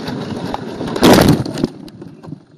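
An object crashes hard into the ground.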